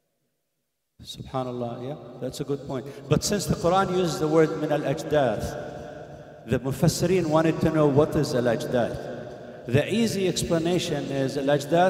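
A man recites in a melodic chant through a microphone, echoing in a large hall.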